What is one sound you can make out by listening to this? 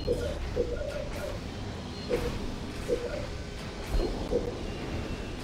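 Soft electronic menu blips chime in quick succession.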